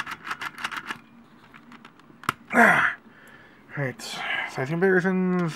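Plastic toy parts click and clack as they are handled.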